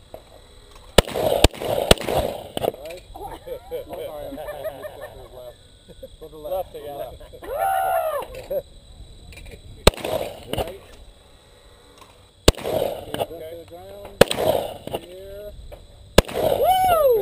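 Shotguns fire loud sharp blasts outdoors, echoing across open ground.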